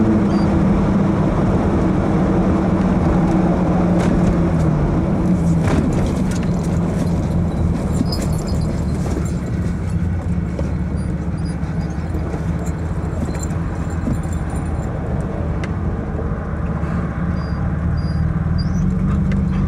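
Wind rushes through an open car roof.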